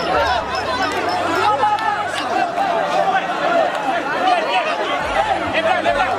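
A large crowd of men and women talk and shout all at once, close by, outdoors.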